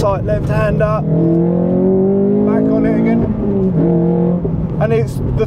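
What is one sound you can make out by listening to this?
A car engine revs up, its pitch rising as it accelerates.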